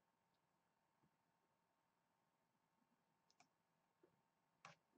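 A young man speaks briefly and quietly into a close microphone.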